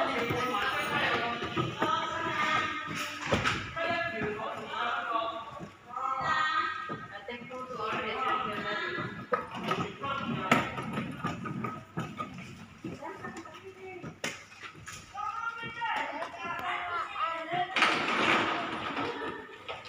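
A young child talks and calls out nearby.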